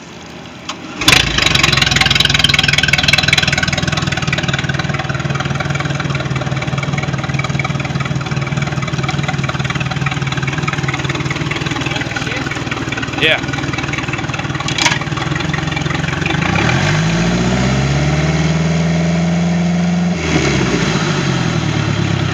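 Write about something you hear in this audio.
A boat engine starts up and idles with a steady rumble.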